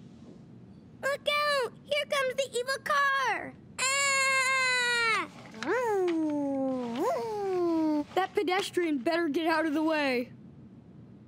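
A boy shouts in a high, excited voice and screams.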